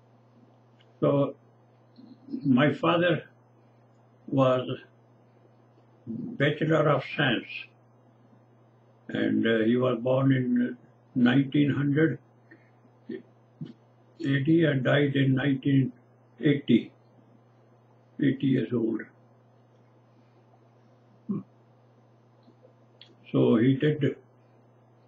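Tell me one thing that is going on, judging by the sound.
An elderly man speaks calmly and slowly in short phrases, close to a microphone.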